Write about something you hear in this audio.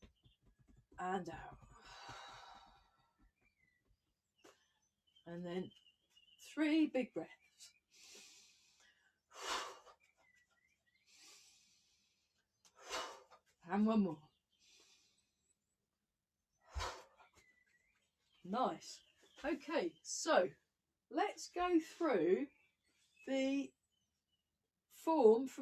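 A young woman speaks calmly and close by, in short phrases with pauses.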